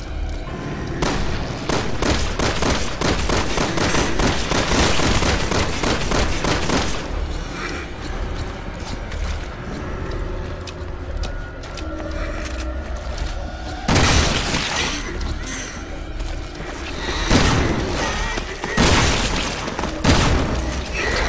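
A gun fires shots in rapid bursts with loud sharp cracks.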